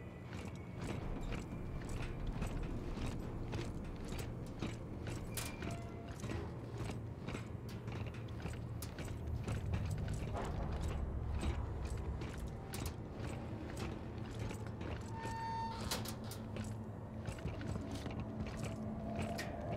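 Heavy boots clank on metal floor with steady footsteps.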